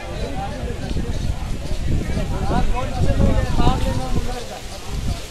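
Several men talk at once nearby, outdoors.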